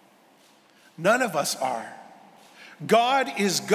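A middle-aged man speaks slowly into a microphone in a large echoing hall.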